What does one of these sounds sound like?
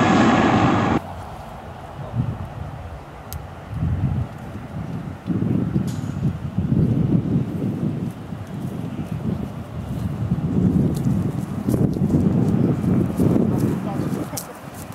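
A propeller aircraft drones as it approaches.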